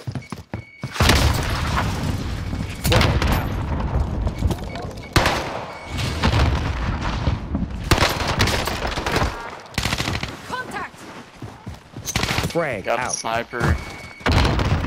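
Gunfire crackles in loud bursts.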